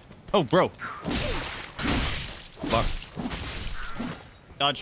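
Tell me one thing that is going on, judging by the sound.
A sword slashes and strikes a body.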